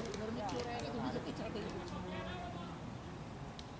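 Men call out to each other nearby outdoors.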